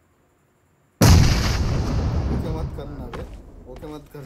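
A grenade explodes with a loud boom that rumbles and fades.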